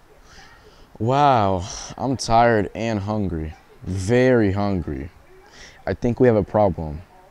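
A teenage boy reads aloud with expression, close by.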